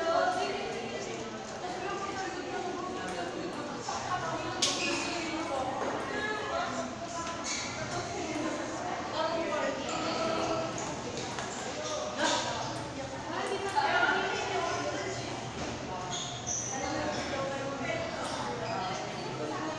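Young people talk and chatter nearby in an echoing room.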